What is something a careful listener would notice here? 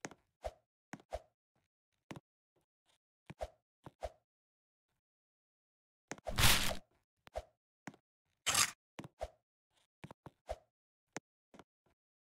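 Short soft thuds of a game character jumping and landing come in quick irregular bursts.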